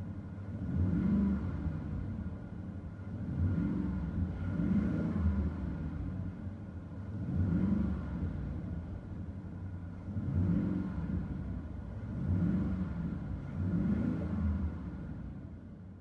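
An engine revs repeatedly, heard from inside a car, with a deep muffled rumble.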